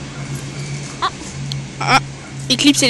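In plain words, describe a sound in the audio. A dog barks nearby.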